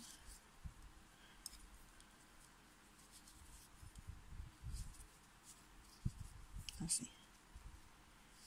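Fingers softly rustle against yarn.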